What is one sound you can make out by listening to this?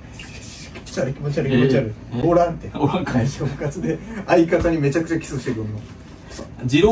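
Two young men talk and laugh excitedly close by.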